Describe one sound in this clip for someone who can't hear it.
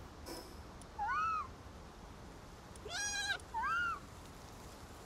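A small creature squeaks in short rising chirps.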